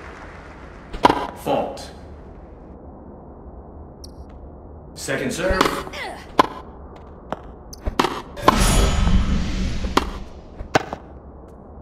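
A tennis ball is struck with a racket with sharp pops.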